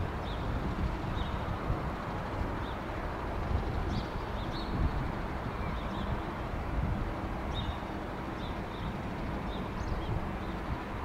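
A jet airliner's engines rumble steadily as the plane taxis past.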